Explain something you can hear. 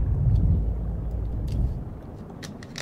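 A man drinks from a bottle.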